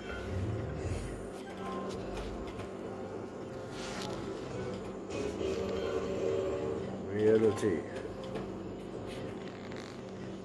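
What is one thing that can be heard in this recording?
A slot machine plays jingling tunes as its reels spin.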